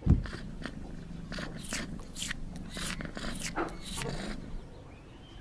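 A kitten licks with quick wet smacks.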